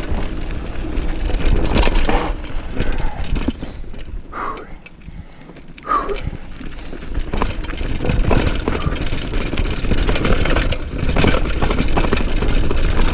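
Mountain bike tyres roll and rattle downhill over a rocky dirt trail.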